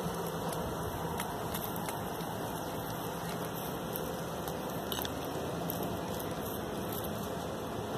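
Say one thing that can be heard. A small dog's paws patter softly on paving stones.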